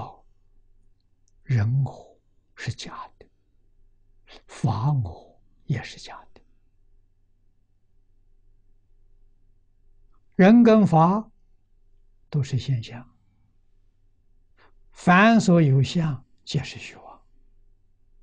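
An elderly man speaks slowly and calmly into a microphone, in short phrases with long pauses.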